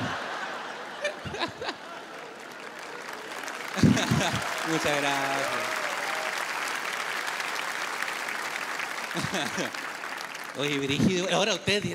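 A large audience claps and cheers.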